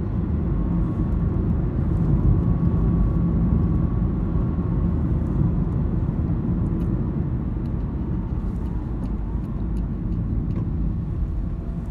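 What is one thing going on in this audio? Tyres roll steadily over the road.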